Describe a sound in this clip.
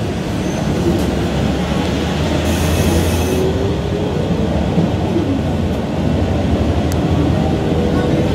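A motorbike engine rumbles as it passes close by.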